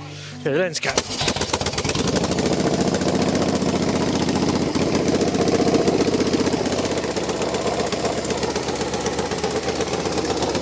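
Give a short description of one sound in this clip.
A motorcycle engine idles with a steady, loud, rapid chugging.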